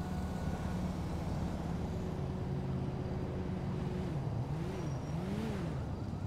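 A car drives past at a distance.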